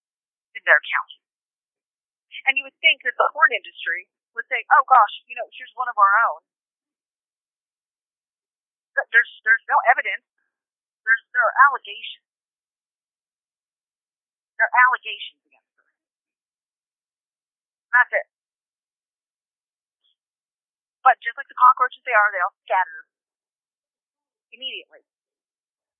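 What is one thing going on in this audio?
A young woman speaks calmly in short phrases, close to a microphone, with pauses between them.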